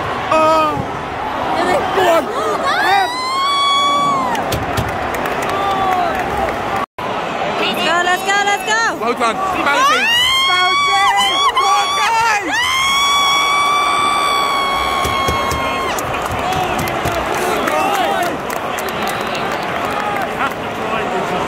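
A large stadium crowd roars and chants loudly outdoors.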